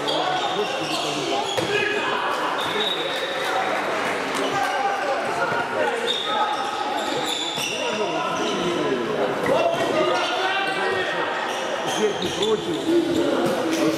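Sneakers squeak on a wooden court in a large echoing hall.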